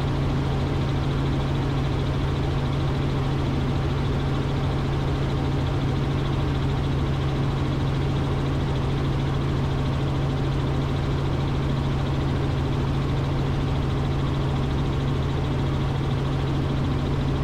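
A helicopter engine and rotor drone steadily and loudly from inside the cabin.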